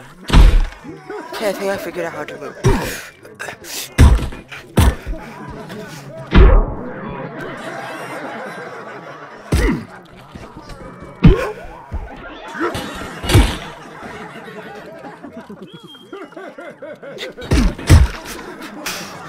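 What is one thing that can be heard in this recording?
Heavy blows thud and smack against bodies again and again.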